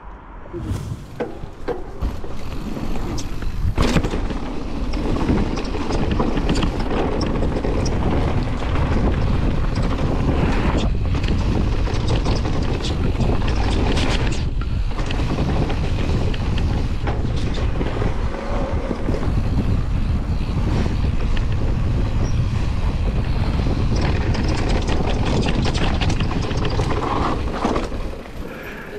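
A bicycle frame clatters and knocks over bumps.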